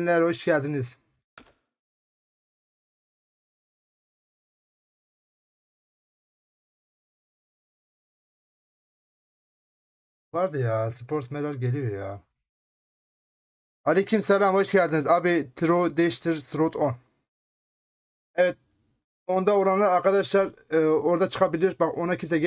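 A man talks into a close microphone with animation, in short bursts.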